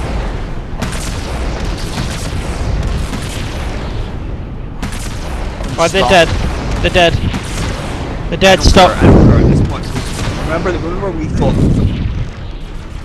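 Energy weapons fire in bursts with sharp zapping blasts.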